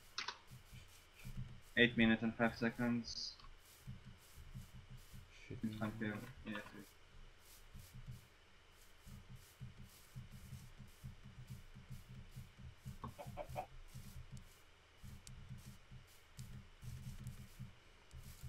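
Footsteps pad softly through grass.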